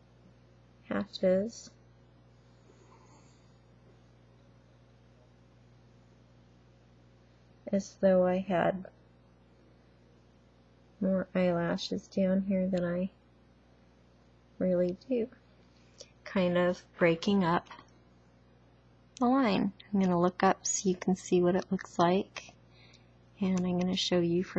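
A woman talks close to a microphone, in short bursts with pauses.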